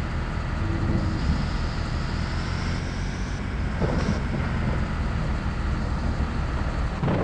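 A truck engine rumbles steadily at idle.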